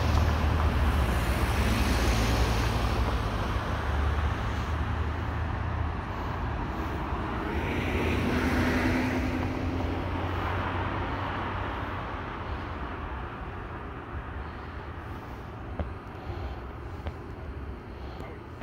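A car engine idles nearby with a low rumble.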